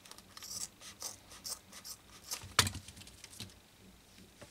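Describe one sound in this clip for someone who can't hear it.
Scissors snip through stiff material in quick, repeated cuts.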